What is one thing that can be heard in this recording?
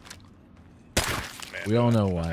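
A gunshot fires.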